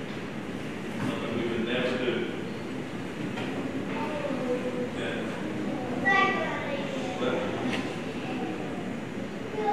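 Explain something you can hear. A man speaks through a microphone in a large, echoing hall.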